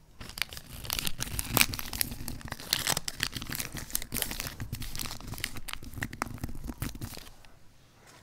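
Paper crinkles and rustles up close.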